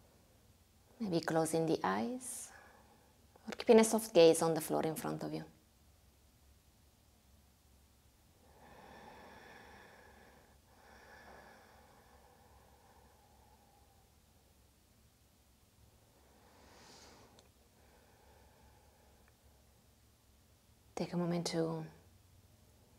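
A young woman sings slowly and calmly into a close microphone.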